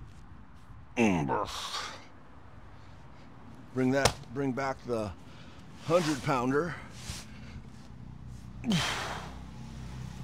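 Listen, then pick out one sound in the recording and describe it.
A man grunts and breathes hard with effort.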